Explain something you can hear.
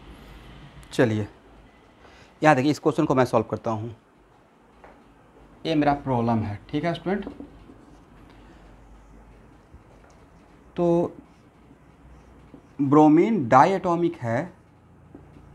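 A man speaks in short bursts, explaining calmly.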